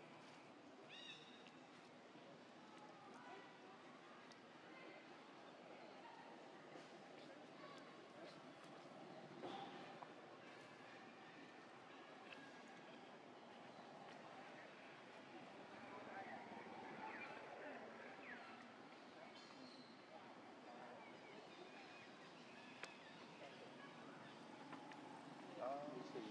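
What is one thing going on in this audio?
A baby monkey squeaks and squeals.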